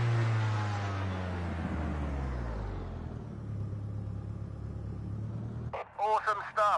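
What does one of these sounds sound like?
A racing car engine slows and idles down.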